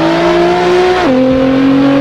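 A racing car's exhaust pops and crackles.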